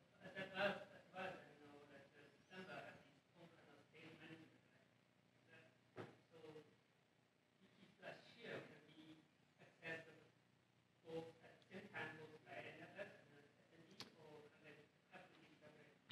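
A man speaks calmly through a microphone with pauses, in a room with slight echo.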